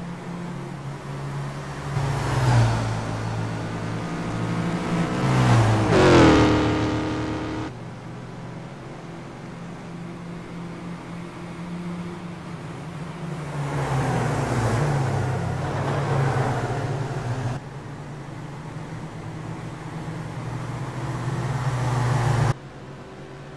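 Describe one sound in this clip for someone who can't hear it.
Racing car engines roar and rev close by.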